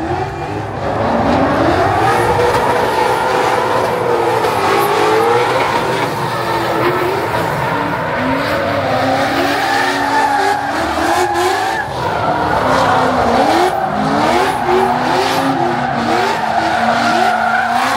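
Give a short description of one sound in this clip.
Tyres screech loudly on pavement.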